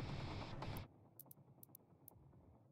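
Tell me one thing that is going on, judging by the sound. Soft menu clicks tick several times.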